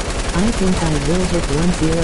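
A gun fires several shots.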